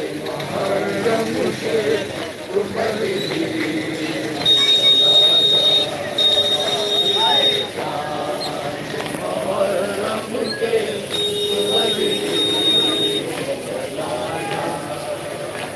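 Men beat their chests with their palms in a steady rhythm.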